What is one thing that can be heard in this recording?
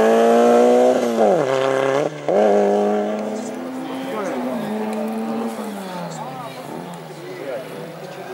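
A second rally car engine revs and whines in the distance.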